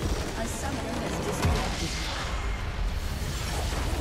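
A large game structure explodes with a deep boom.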